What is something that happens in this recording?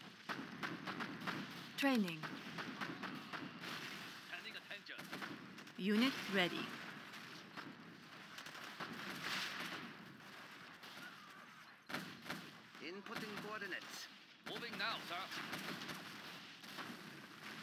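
Gunfire and explosions rattle in a battle.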